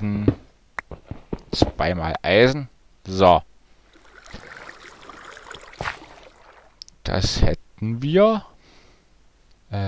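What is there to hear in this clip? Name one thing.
A pickaxe chips at stone in quick knocks.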